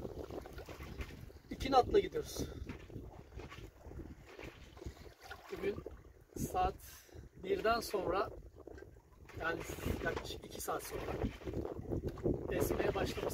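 Water splashes and rushes along a boat's hull.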